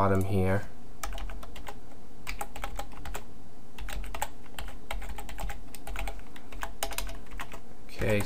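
Keys click on a computer keyboard in quick bursts.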